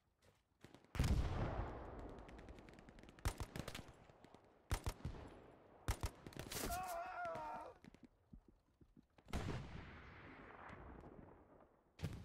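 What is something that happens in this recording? Loud explosions boom and echo outdoors.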